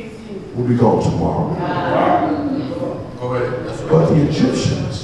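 A man preaches with animation into a microphone, his voice carried by loudspeakers through an echoing hall.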